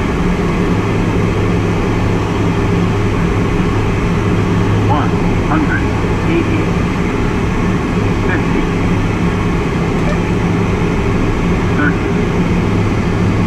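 Wind rushes loudly past the plane.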